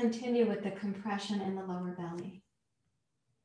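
A woman speaks calmly, close to a microphone.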